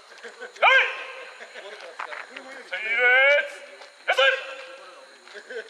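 Young men shout loud, drawn-out calls outdoors.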